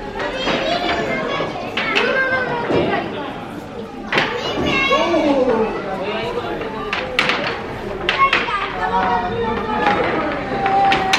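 Adult women chat nearby outdoors.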